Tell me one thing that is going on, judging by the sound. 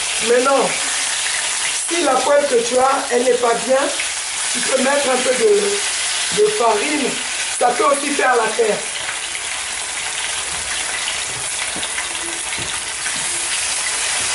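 A spatula scrapes against a frying pan.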